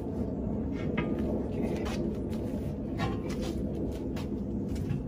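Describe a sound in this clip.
A metal bar strikes a truck tyre with sharp knocks.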